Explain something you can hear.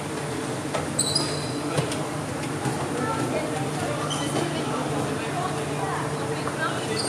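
Shoes squeak sharply on a hard court floor in a large echoing hall.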